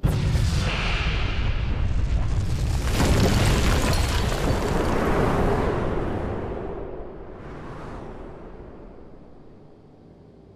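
A huge explosion booms and roars, then slowly rumbles away.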